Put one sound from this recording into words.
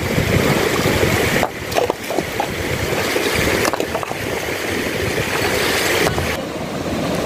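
Water splashes as stones are moved in a shallow stream.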